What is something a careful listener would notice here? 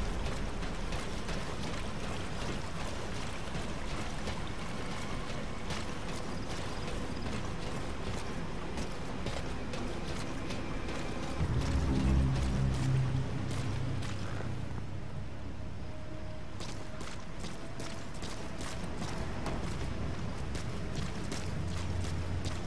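Footsteps tap on metal stairs and walkways.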